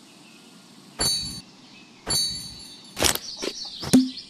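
Bright electronic chimes ring out as buttons are pressed.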